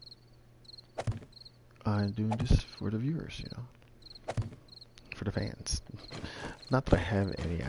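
A wooden frame thuds into place.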